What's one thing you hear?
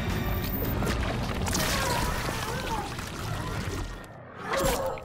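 Flesh tears with wet, squelching splatters.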